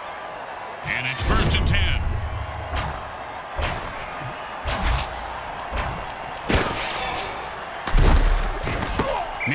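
Armoured players crash together in heavy thuds.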